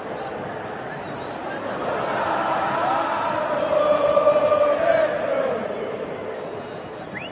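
A huge crowd sings and chants loudly in a large open stadium.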